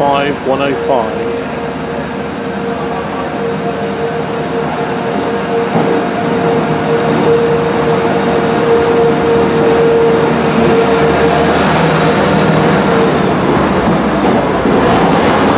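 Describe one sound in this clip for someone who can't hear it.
A train engine gives off a steady high whine that falls away as it passes.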